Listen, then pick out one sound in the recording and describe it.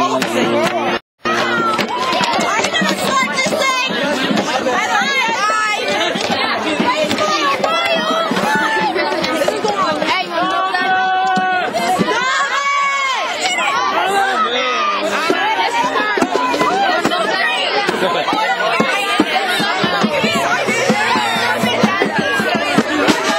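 A crowd of young people talks and shouts excitedly all around, outdoors.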